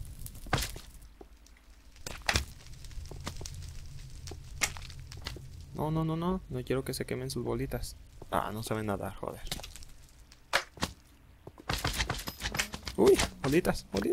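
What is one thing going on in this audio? Sword blows land with sharp, dull hits.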